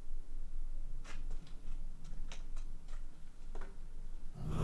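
A door handle clicks and rattles.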